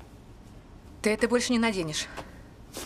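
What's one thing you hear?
A young woman speaks calmly up close.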